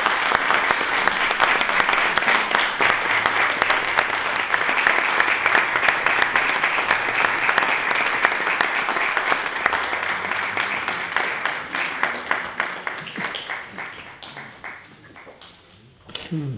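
An audience applauds loudly in an echoing hall, then the clapping fades.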